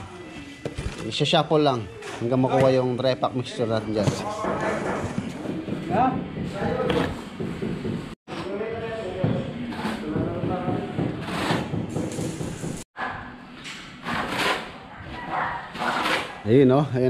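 A shovel scrapes and mixes wet sand and cement on a hard floor.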